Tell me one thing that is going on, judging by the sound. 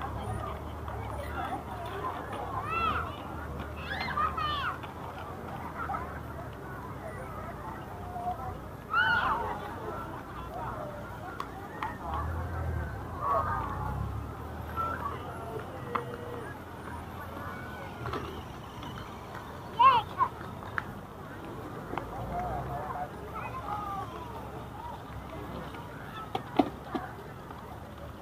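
A crowd of people chatters at a distance.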